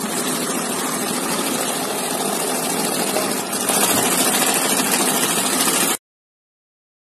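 A banknote counting machine whirs and rapidly flicks through notes.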